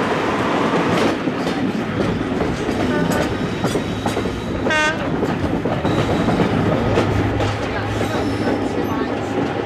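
A diesel locomotive engine rumbles as it approaches slowly.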